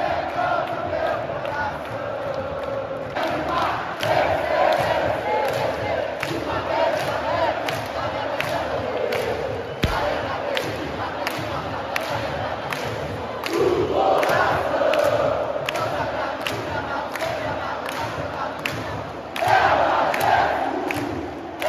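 A huge stadium crowd sings and chants loudly in unison.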